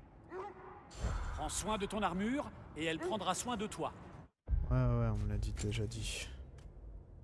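A man speaks calmly in a deep voice.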